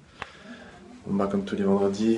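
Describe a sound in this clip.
A young man speaks calmly and close.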